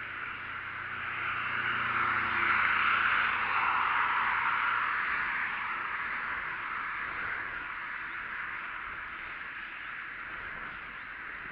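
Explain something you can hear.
Wind rushes steadily past, loud and close.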